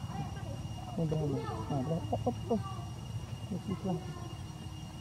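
A baby monkey squeals and whimpers close by.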